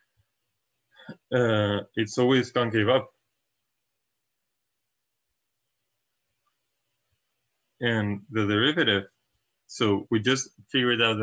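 A young man speaks calmly and clearly into a close microphone, in short bursts with pauses.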